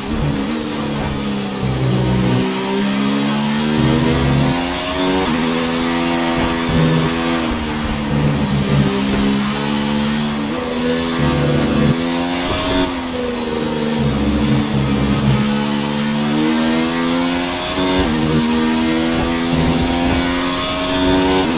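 A racing car's engine screams loudly, rising and falling in pitch as it speeds up and brakes.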